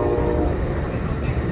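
A crossing bell rings briefly at the start.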